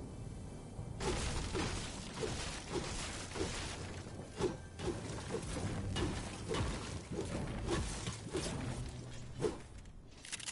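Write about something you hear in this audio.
A pickaxe chops into wood with repeated blows.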